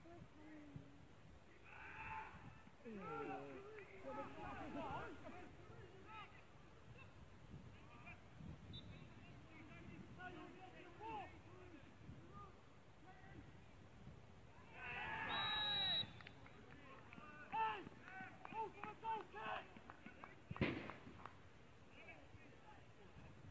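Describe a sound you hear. Men shout to each other across an outdoor football pitch.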